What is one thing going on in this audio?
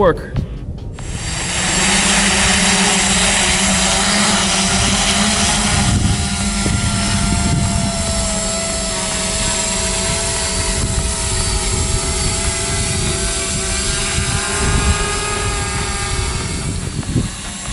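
A drone's propellers whir and buzz steadily as it lifts off and hovers close by.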